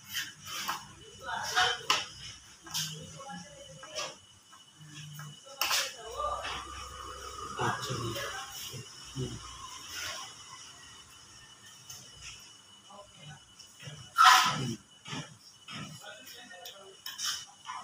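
A spoon clinks and scrapes against a plate.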